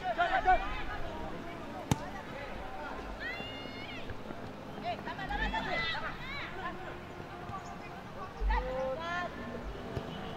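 Young players shout to each other across an open field, some distance away.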